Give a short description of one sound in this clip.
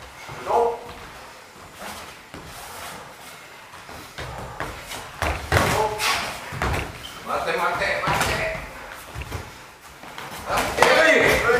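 Men shout sharply in a hall with some echo.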